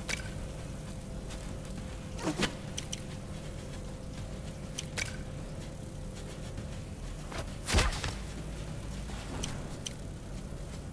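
Short game interface clicks and blips sound now and then.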